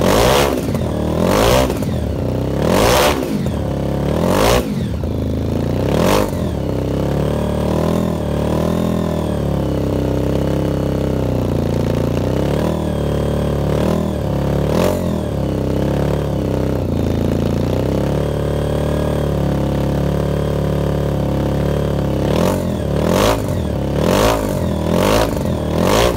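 A loud motorcycle engine idles roughly and revs in sharp bursts close by.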